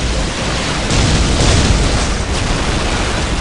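A large explosion booms.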